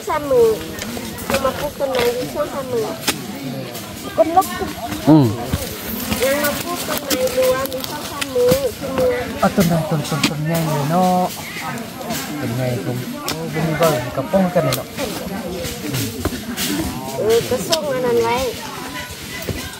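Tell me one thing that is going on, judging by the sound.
Men talk nearby in an animated way.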